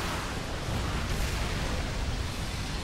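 A heavy body crashes to the ground.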